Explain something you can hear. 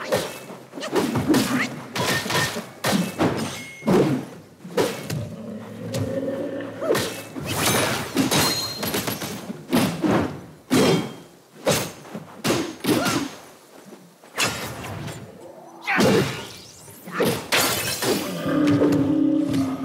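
Heavy blows and thuds land rapidly in a fight.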